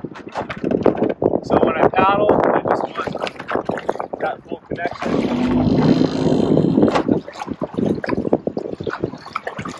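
A paddle dips and splashes rhythmically in calm water.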